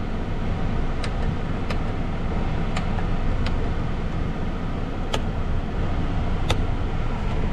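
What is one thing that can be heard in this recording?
A light switch clicks several times.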